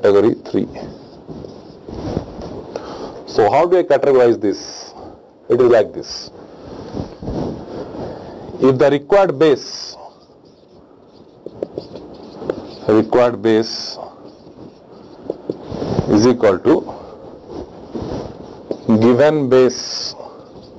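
A man speaks calmly and clearly, as if explaining.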